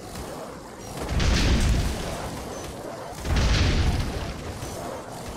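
Two heavy blasts boom and rumble.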